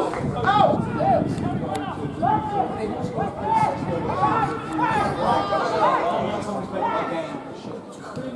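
A football is kicked on grass.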